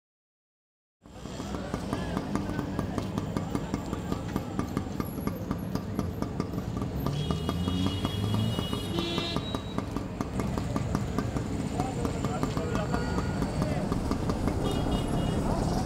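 A motor rickshaw engine idles close by with a rapid, steady putter.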